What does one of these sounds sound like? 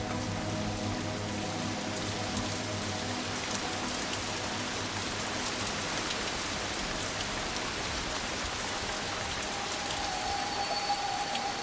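Heavy rain pours steadily, splashing on water and leaves outdoors.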